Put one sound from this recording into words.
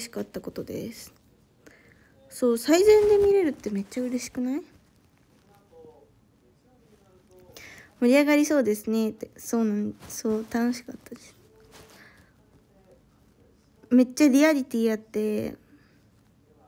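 A young woman talks softly and casually, close to a microphone, in short bursts with pauses.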